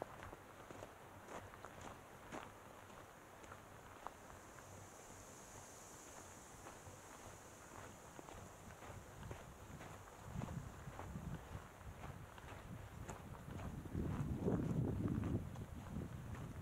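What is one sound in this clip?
Footsteps crunch on a dry dirt trail.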